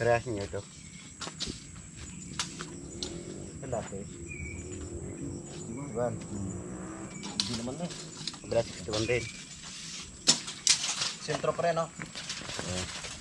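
Men talk casually nearby outdoors.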